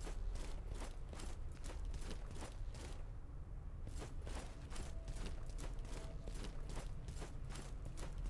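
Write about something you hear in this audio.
Footsteps crunch quickly over rocky ground.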